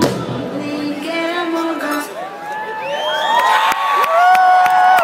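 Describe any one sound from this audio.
Live music plays loudly through large speakers outdoors.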